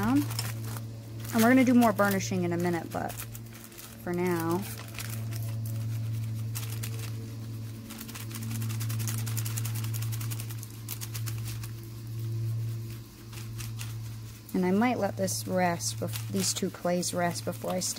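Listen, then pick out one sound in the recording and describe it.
Tissue paper rustles and crinkles as a hand rubs over it.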